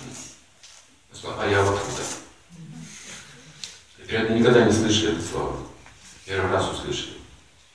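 An elderly man speaks calmly and clearly nearby, with pauses between phrases.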